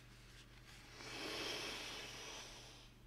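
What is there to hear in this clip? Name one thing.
A young man sniffs deeply, close to a microphone.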